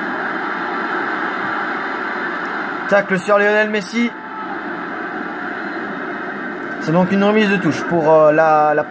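A stadium crowd roars through a television loudspeaker.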